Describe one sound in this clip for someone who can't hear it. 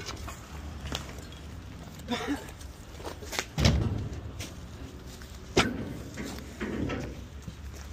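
Footsteps crunch over scattered debris.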